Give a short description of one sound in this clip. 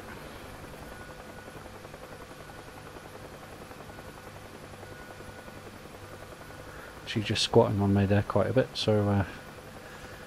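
A helicopter's rotor thumps with a steady low drone.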